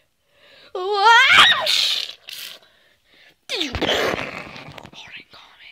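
Fingers rub and bump against a nearby microphone.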